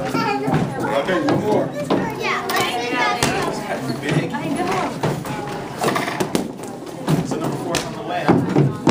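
Several people chatter.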